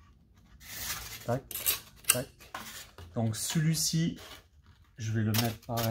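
Foam boards rub and squeak as they are pressed together.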